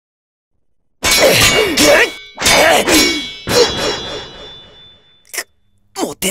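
Swords clash sharply.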